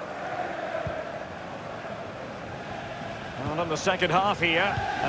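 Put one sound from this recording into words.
A stadium crowd murmurs and chants steadily.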